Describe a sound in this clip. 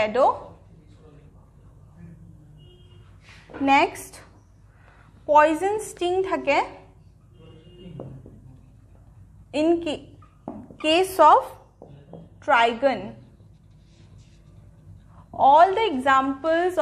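A woman speaks steadily in short phrases, lecturing close by.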